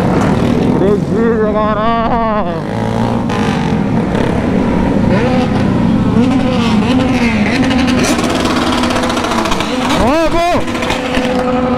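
A motorcycle engine revs sharply up and down.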